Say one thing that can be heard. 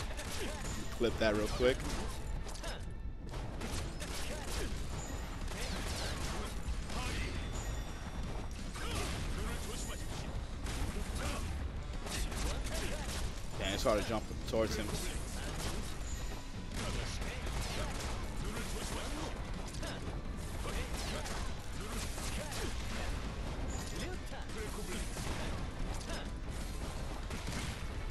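Fighting game hits, blasts and explosions play.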